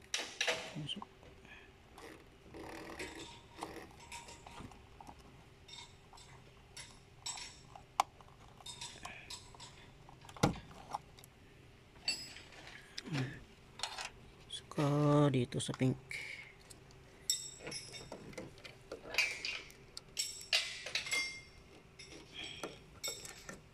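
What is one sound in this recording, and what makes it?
Wires and plastic connectors rustle and click as a hand handles them.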